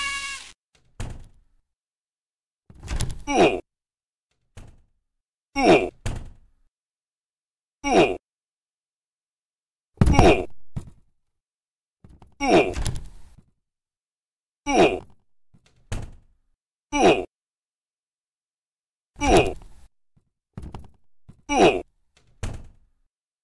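Footsteps thud slowly and evenly on a hard floor.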